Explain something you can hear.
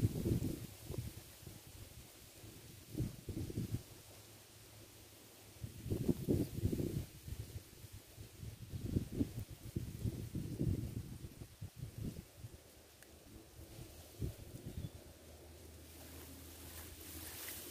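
Wind blows in gusts outdoors, rumbling against the microphone.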